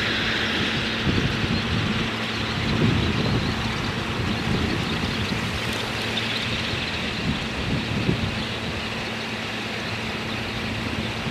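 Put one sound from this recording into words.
Many wings beat loudly as a flock of birds takes off from the water.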